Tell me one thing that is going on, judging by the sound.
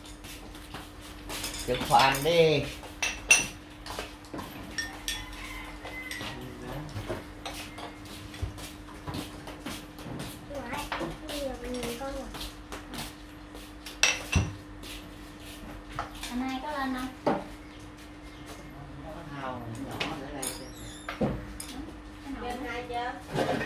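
Chopsticks and spoons clink against ceramic bowls.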